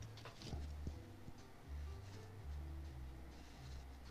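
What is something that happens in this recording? A brush softly strokes across paper.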